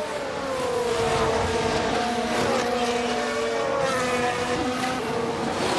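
A racing car engine whines at high revs and shifts pitch as it speeds past.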